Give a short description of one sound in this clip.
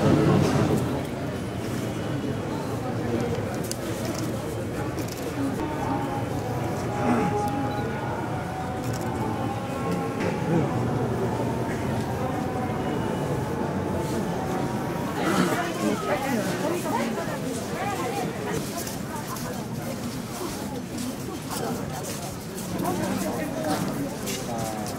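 Footsteps shuffle on stone paving.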